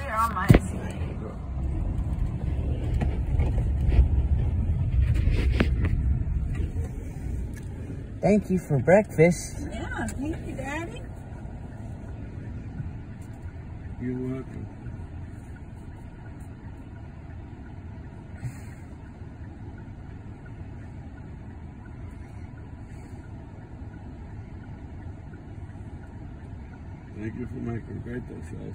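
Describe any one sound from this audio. A car's engine hums steadily from inside the cabin.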